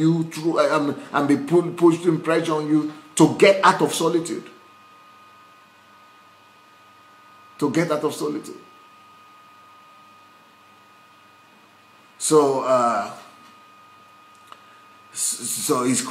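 A man speaks close to a microphone, calmly and in bursts with long pauses.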